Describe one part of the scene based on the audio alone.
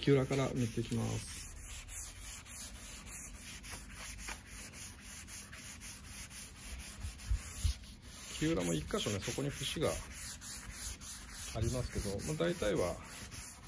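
A cloth rubs softly back and forth over a wooden board.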